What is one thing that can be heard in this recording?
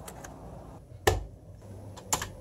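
A plug clicks into a power socket.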